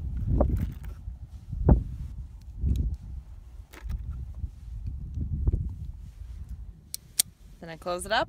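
Metal cartridges click as a revolver's cylinder is loaded.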